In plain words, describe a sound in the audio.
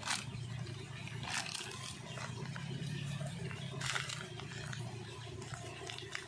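Small metal balls clink together inside a plastic bag.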